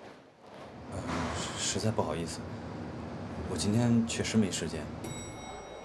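A man answers over a phone.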